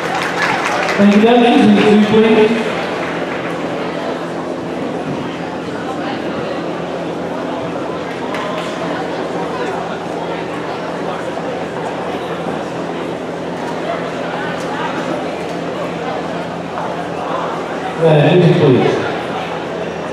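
Spectators cheer and call out briefly.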